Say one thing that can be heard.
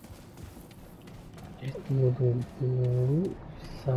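Footsteps thud on stone steps.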